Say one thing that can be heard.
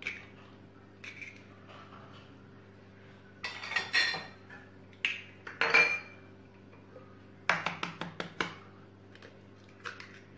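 An egg cracks sharply against the rim of a bowl.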